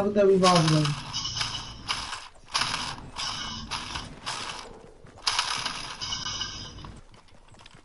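Quick footsteps patter on the ground as a game character runs.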